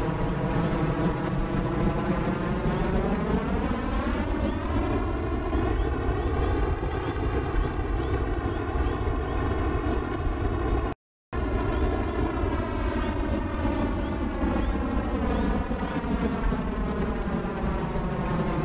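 A jet engine roars steadily, its pitch rising and then slowly falling.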